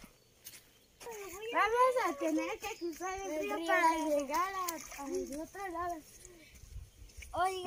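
Young children talk and call out excitedly close by.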